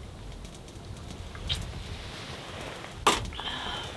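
A bottle clinks as it is set down on a table.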